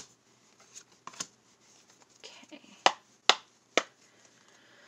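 Playing cards tap and slap onto a wooden table.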